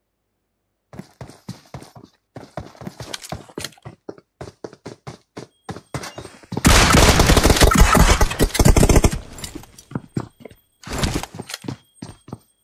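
Rapid gunfire cracks in quick bursts, close by.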